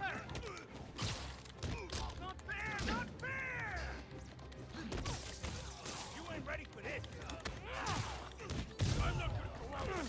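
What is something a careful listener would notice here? Punches and kicks land with heavy thuds in a brawl.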